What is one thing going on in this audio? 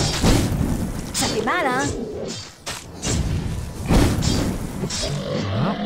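Blades clash and slash in a fight.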